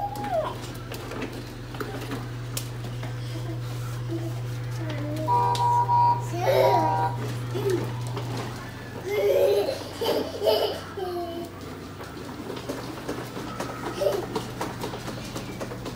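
Plastic wheels of a toddler's ride-on toy car roll and rumble over a wooden floor.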